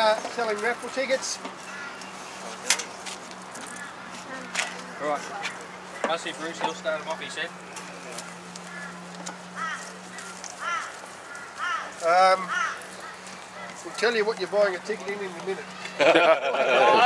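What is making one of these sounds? An older man talks calmly outdoors.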